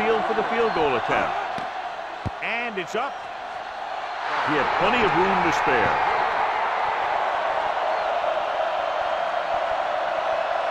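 A large crowd roars and cheers, swelling loudly after a kick.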